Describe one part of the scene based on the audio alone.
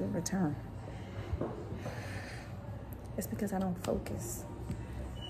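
A woman speaks calmly close to the microphone.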